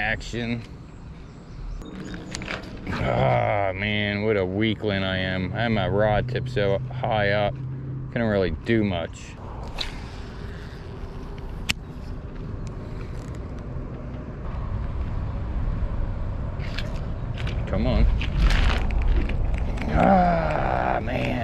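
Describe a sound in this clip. A fishing reel clicks and whirs as its handle is cranked.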